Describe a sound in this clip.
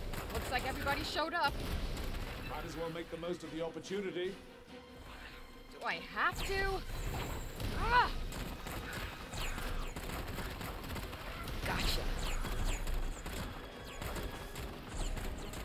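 Magic blasts crackle and burst in quick bursts.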